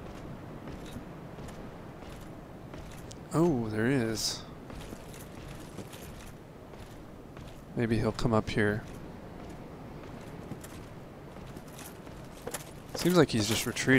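Armoured footsteps clunk on wooden planks.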